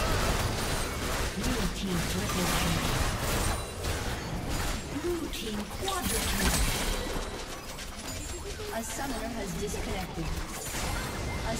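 Magic blasts and clashing weapons sound from a busy fantasy battle.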